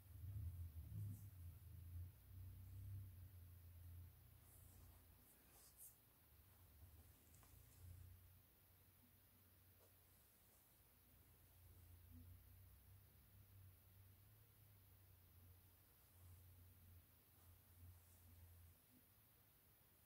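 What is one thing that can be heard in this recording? Hands turn and handle a stiff leather shoe with soft rubbing and knocking.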